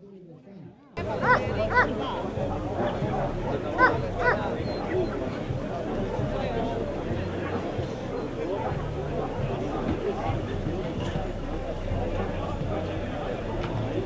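A crowd of people chatters outdoors in a steady murmur.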